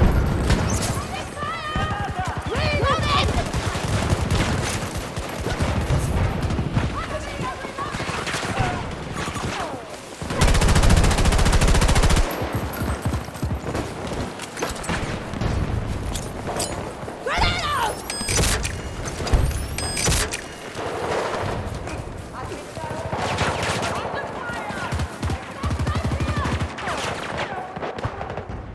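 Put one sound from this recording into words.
Rifle fire rattles in rapid bursts.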